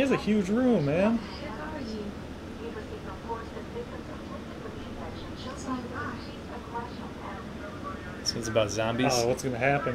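A woman reads the news through a television speaker.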